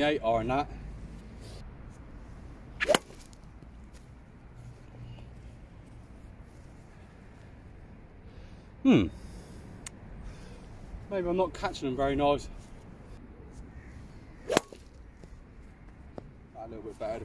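A man speaks calmly nearby, outdoors.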